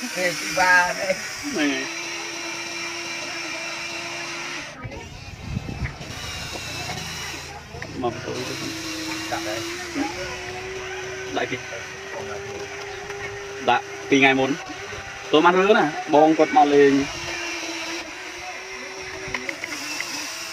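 A toy excavator's electric motor whines steadily.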